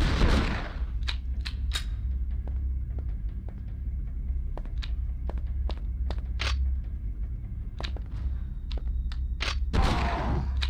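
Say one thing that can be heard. Footsteps tap quickly on a hard stone floor.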